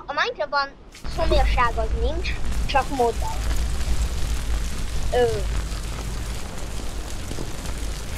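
A small fire crackles and hisses nearby.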